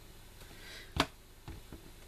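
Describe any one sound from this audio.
A small object knocks down onto a tabletop.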